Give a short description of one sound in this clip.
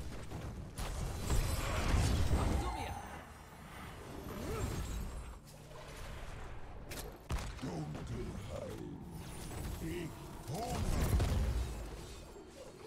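Game spell effects whoosh and crackle in a battle.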